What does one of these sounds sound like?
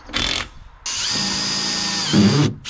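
A power drill whirs.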